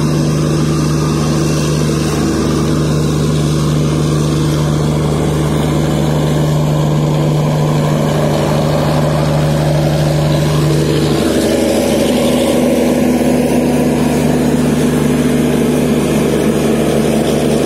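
A train rumbles slowly past close by.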